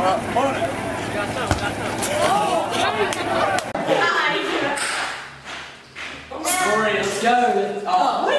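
Several young people talk and laugh excitedly close by.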